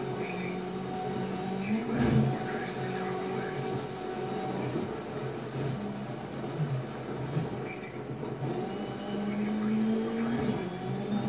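A rally car engine roars and revs.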